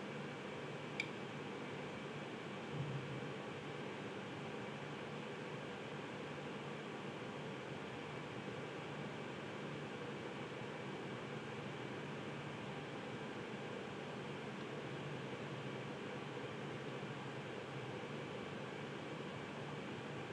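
A metal compass clicks as it is adjusted by hand.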